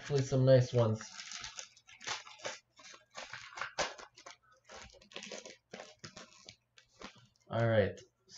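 A foil pack crinkles and tears as it is opened.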